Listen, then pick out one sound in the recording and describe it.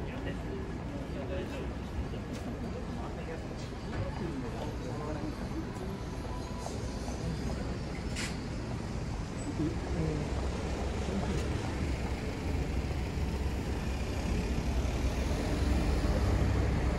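Footsteps tap on a pavement outdoors.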